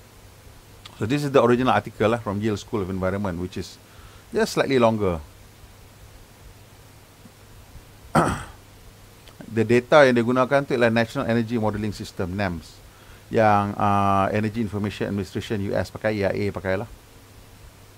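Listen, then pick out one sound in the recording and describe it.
A middle-aged man speaks calmly into a close microphone, in bursts with pauses.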